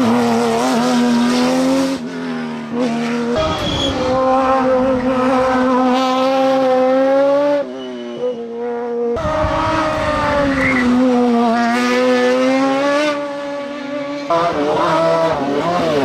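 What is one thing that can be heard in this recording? Racing car engines roar loudly at high revs, rising and dropping in pitch.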